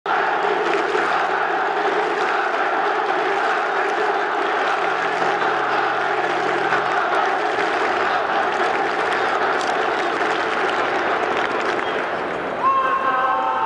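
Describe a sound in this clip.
A large crowd chants and cheers loudly in an open stadium.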